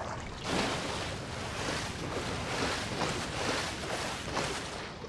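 Water splashes steadily as a character swims.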